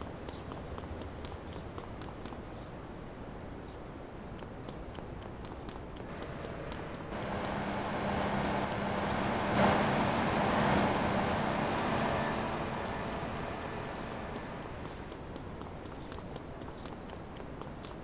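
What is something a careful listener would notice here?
Footsteps patter quickly on hard ground.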